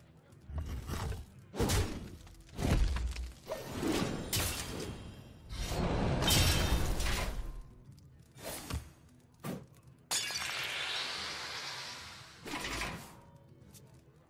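Video game sound effects whoosh, chime and thump.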